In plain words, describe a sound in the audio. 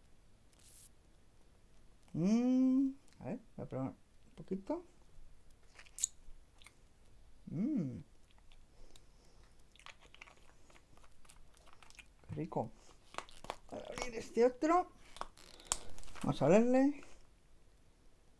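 A small plastic bottle clicks and rattles in a man's hands.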